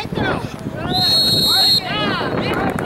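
A referee's whistle blows a short, sharp blast.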